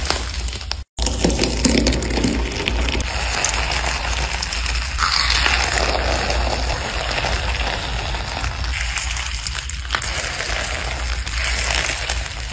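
Hands squish and pinch a soft slime, which crackles and pops.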